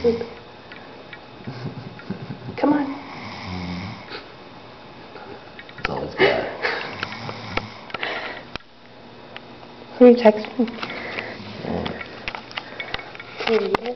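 A man snores deeply in sleep.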